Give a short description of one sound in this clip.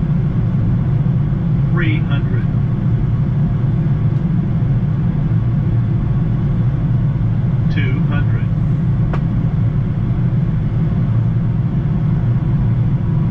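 An aircraft engine drones steadily inside a cockpit.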